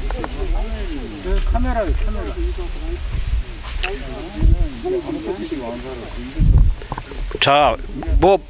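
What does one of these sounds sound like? A man talks quietly nearby.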